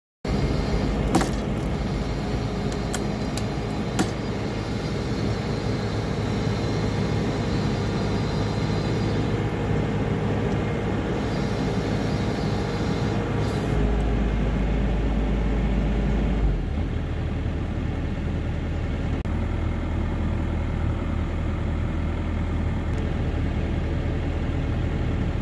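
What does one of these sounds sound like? A diesel utility tractor engine runs under load.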